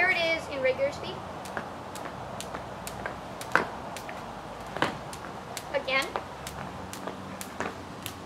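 A jump rope slaps against the pavement again and again.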